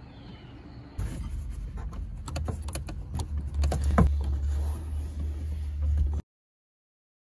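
A hand presses and rubs against plastic trim, making knocks and scrapes.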